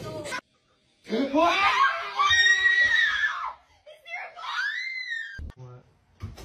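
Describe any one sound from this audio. A woman screams loudly in fright.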